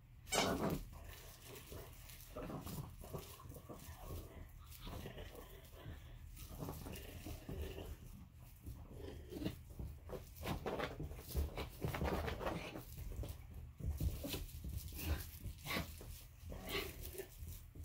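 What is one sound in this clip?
A small dog scrabbles and pads on carpet.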